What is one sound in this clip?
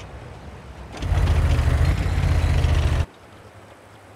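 A tank engine rumbles and roars.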